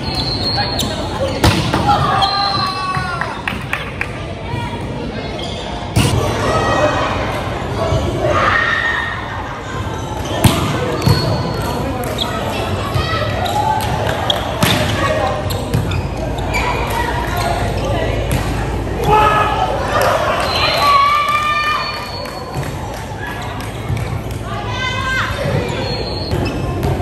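Young men shout and call out to each other in an echoing hall.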